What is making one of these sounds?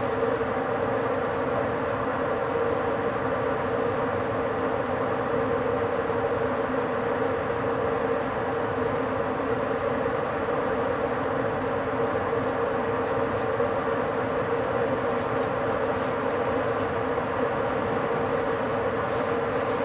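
A train rolls steadily along the rails with a low hum.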